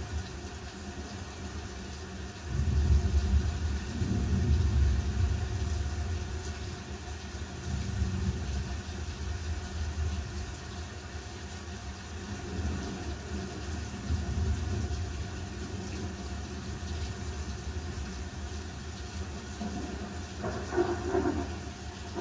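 A pen scratches and taps on paper while shading.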